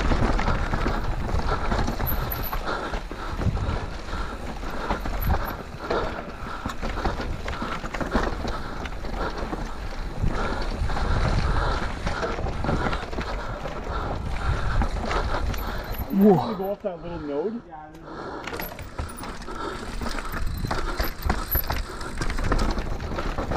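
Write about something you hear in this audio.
Bicycle tyres roll and crunch over a dirt trail.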